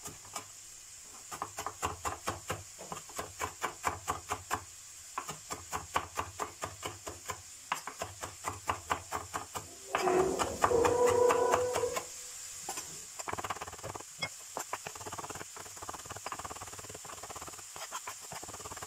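A knife chops quickly on a plastic cutting board.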